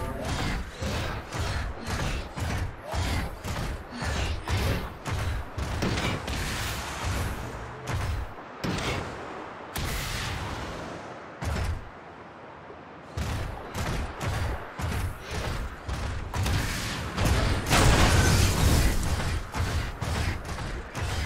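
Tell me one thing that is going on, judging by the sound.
Heavy metallic footsteps stomp in a steady rhythm.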